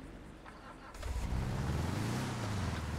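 A buggy's engine roars as it drives off over dirt.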